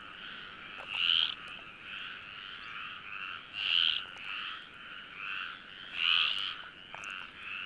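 A frog calls loudly close by with sharp, repeated croaks.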